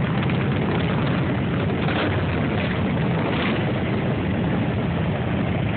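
Motorcycle engines rev up and roar as the bikes pull away.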